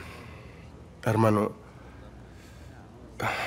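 A man speaks briefly in a low, tense voice close by.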